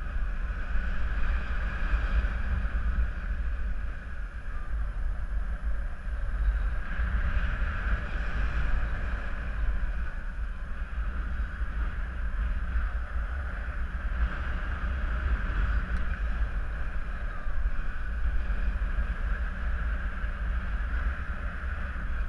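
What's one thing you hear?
Wind rushes and buffets steadily past close by, outdoors high in the air.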